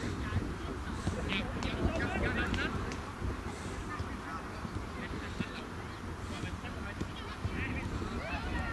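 Boys shout to each other outdoors on a football pitch.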